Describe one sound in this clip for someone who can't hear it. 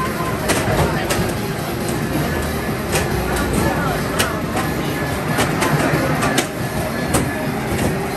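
Racing game engines roar loudly from loudspeakers.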